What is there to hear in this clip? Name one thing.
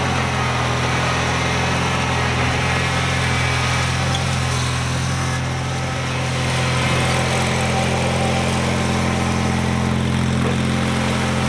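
A small engine on a snow tractor hums steadily nearby, dipping slightly as the tractor turns and then coming back louder.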